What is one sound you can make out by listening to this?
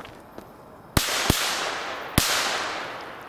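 Firework bangers explode overhead with loud bangs that echo outdoors.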